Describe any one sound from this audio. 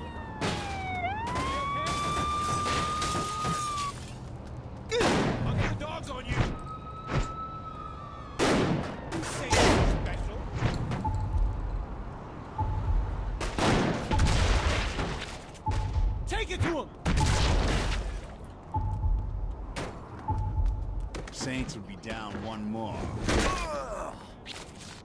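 Heavy punches land with loud thuds.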